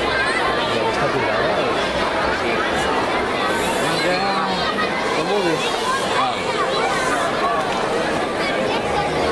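A large crowd of children chatters and shouts in a big echoing hall.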